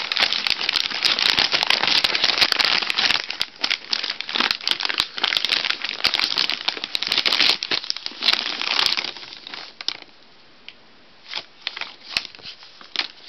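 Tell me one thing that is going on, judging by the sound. Shiny wrapping paper crinkles and rustles loudly.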